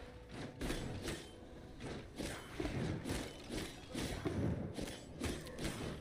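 Sword swings whoosh and spell blasts crackle in quick bursts.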